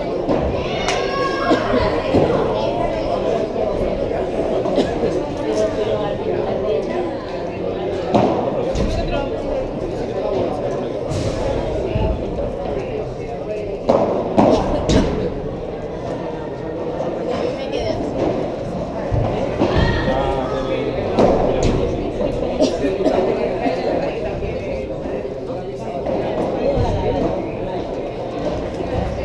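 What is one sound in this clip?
Young voices chatter and call out in a large echoing hall.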